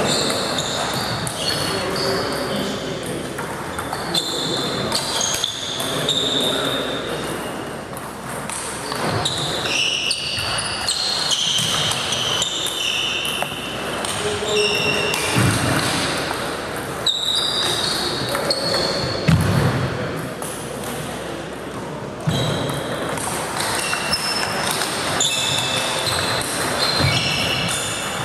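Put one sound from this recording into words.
Ping-pong balls click sharply on tables and paddles in an echoing hall.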